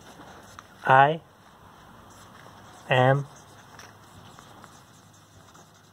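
A marker scratches on paper.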